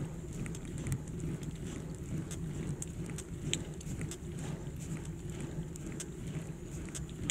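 A bicycle chain and frame rattle with small clicks.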